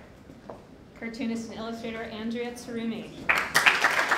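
A woman speaks cheerfully through a microphone.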